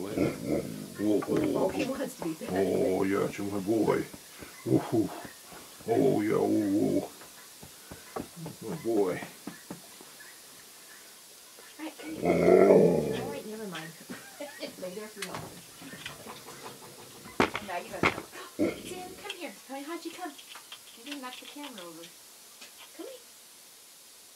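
An elderly man talks calmly close by.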